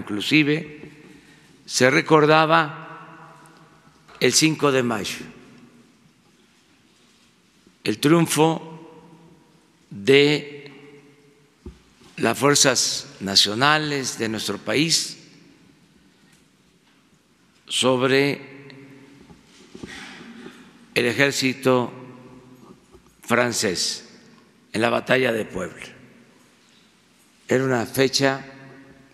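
An elderly man speaks slowly and deliberately into a microphone, in bursts with long pauses, in a reverberant hall.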